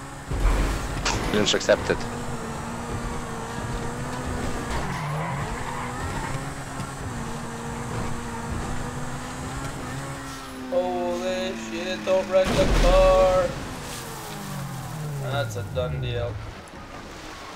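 A car engine hums steadily and then dies away.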